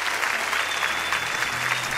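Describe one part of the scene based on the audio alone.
A percussionist taps hand drums.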